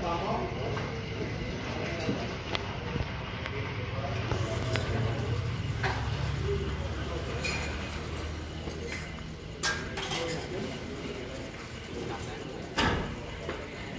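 Men murmur and chat quietly in the background.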